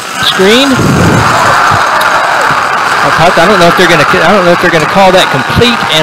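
A crowd cheers loudly in a stadium.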